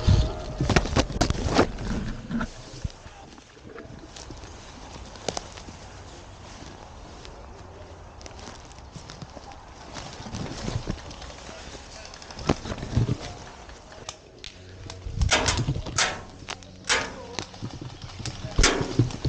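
Ferns rustle and swish as someone pushes through dense undergrowth.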